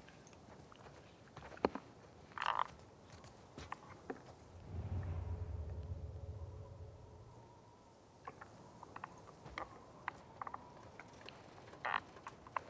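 Footsteps creep softly over a hard floor.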